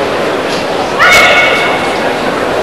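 A karate performer shouts sharply.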